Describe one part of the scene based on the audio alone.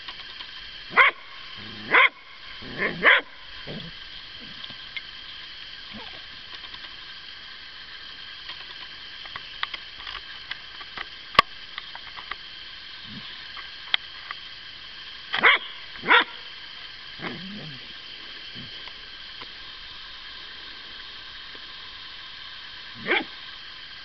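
A dog barks nearby in short bursts.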